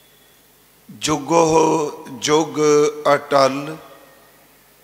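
A man chants through a microphone in short, loud phrases.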